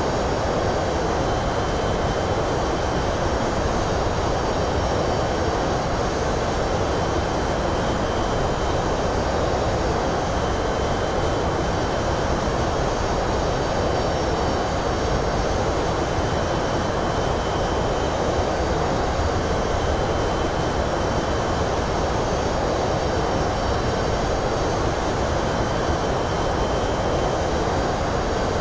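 Jet engines drone with a steady roar of rushing air during flight.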